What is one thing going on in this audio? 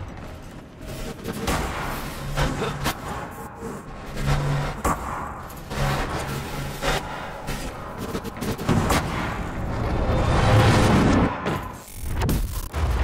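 Footsteps thud and clang on metal.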